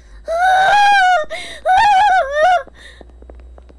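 A young woman sings out in a high, playful voice close to a microphone.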